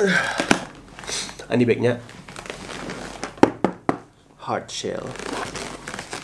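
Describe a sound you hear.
A hard plastic case knocks and rattles in a man's hands.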